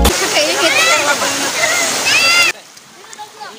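Water splashes and rushes loudly from a pipe into a pool.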